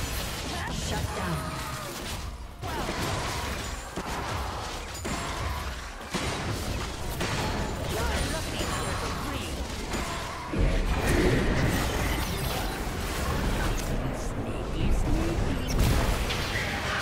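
Game spell effects whoosh and clash in a busy fight.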